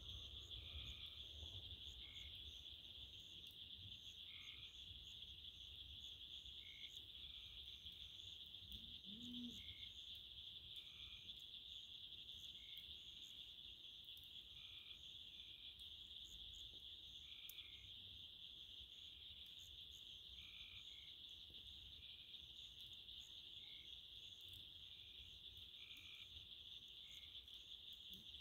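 A campfire crackles and pops close by.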